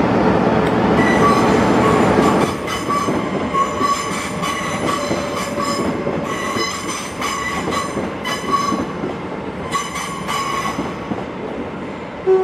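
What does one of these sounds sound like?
A diesel locomotive engine rumbles and hums as a train slowly approaches.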